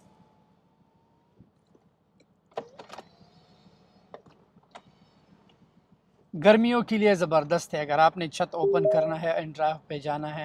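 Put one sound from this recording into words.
A convertible roof whirs as it folds open.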